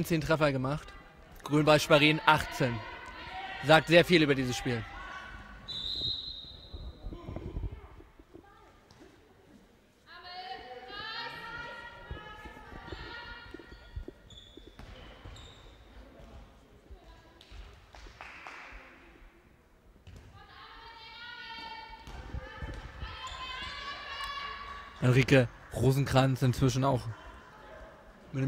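Sports shoes squeak on a hall floor.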